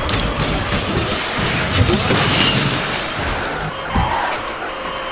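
A car crashes through obstacles with metallic bangs.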